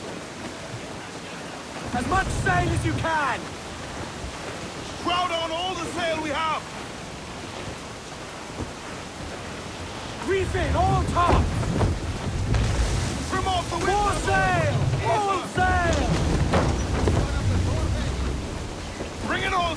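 Water rushes steadily against a sailing ship's hull.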